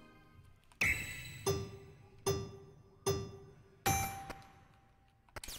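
Countdown beeps from a video game sound one after another.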